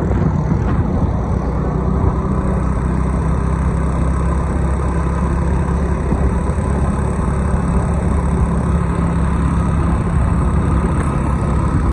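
A motorbike engine hums steadily nearby.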